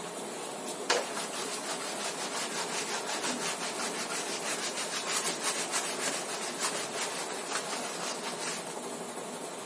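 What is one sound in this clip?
A duster rubs briskly back and forth across a whiteboard.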